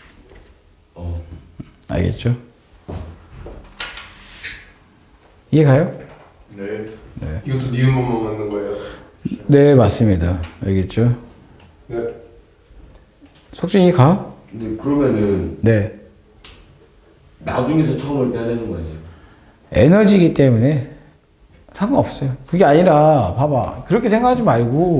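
A man speaks calmly, like a lecturer.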